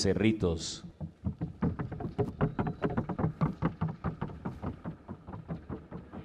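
A Paso Fino horse's hooves beat in a fast trocha gait.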